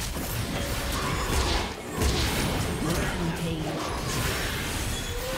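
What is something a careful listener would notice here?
Magic spells burst and crackle in a fast fight.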